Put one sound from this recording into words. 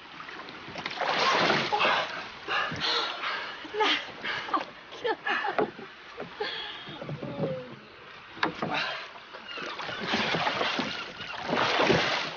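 Water splashes as a man climbs out of the sea.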